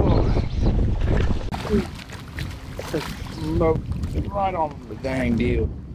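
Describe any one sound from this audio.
A fish splashes in the water beside a boat.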